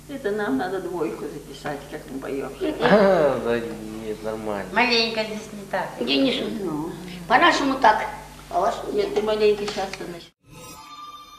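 Elderly women talk and sing together close by.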